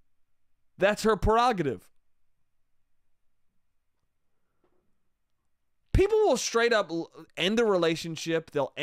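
A young man speaks with animation close into a microphone, with long pauses.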